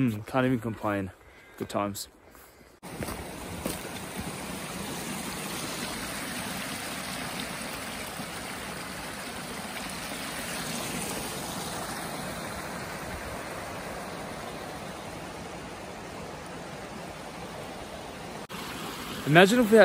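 A young man speaks calmly and close up.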